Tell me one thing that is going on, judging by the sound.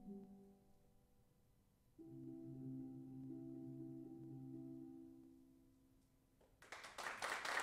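Steel pans ring out with sustained, wavering notes.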